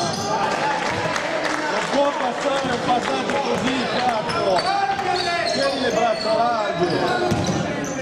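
A basketball is dribbled on a hardwood floor.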